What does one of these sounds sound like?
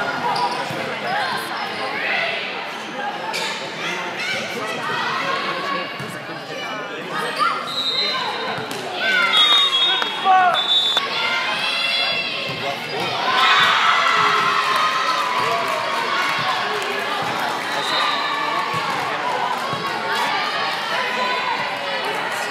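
Young women call out to each other in a large echoing gym.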